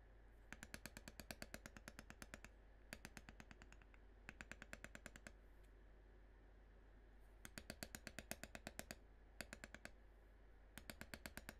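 A mallet taps rapidly on a metal tool stamping leather, in quick bursts.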